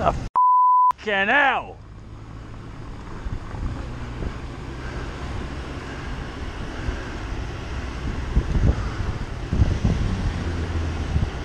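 A car engine hums close ahead at low speed.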